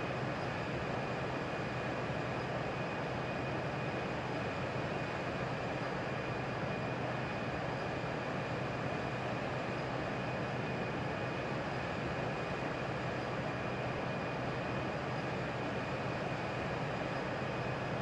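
Jet engines drone steadily with a low, even roar.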